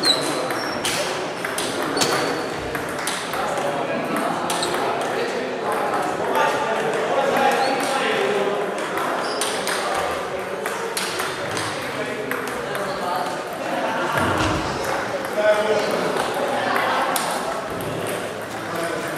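Table tennis balls click sharply on tables and paddles, echoing in a large hall.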